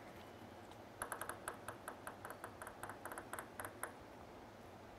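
A table tennis ball bounces quickly and lightly on a table.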